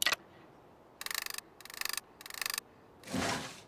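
A metal key turns in a lock with quick ratcheting clicks.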